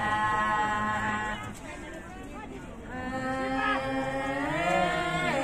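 Young women sing together close by.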